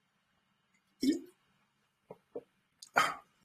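An elderly man sips and swallows water.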